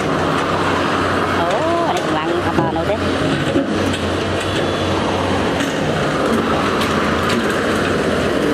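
An excavator bucket scrapes and pushes dirt and rocks.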